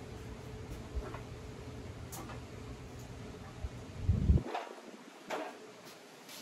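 Metal parts of a power saw clunk and click as they are moved by hand.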